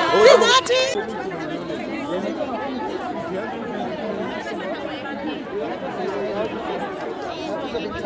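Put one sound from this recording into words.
Men talk quietly outdoors among a murmuring crowd.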